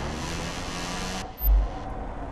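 Racing motorcycle engines roar past at high speed.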